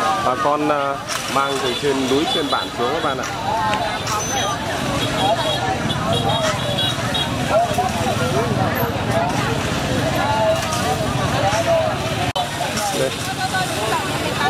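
A busy outdoor crowd chatters, with many men and women talking at once nearby.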